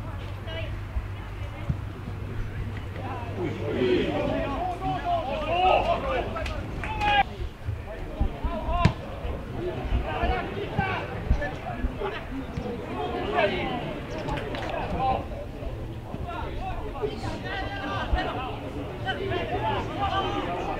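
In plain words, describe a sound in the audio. Players shout to each other outdoors across a sports field.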